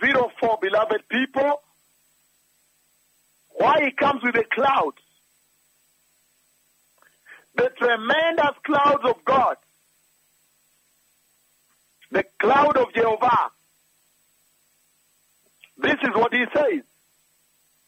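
A man preaches forcefully into a microphone, in short bursts with pauses.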